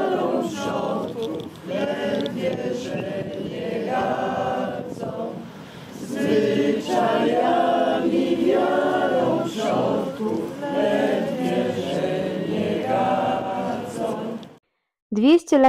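A group of men and women sing together outdoors.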